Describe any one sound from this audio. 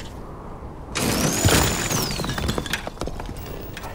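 A mining laser blasts rock with a loud rushing burst.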